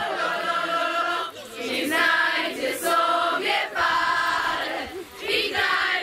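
Young girls sing together in unison.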